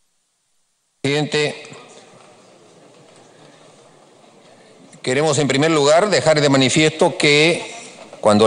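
An older man speaks calmly into a microphone in a large hall.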